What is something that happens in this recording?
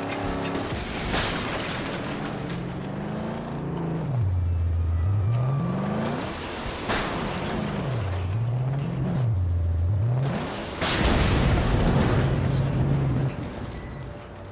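A tower crashes and collapses with loud bangs.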